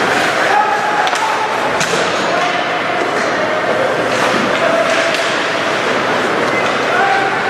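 A crowd of spectators cheers and shouts in an echoing arena.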